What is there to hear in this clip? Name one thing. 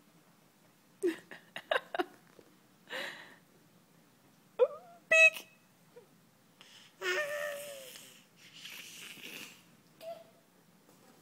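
A baby girl babbles close by.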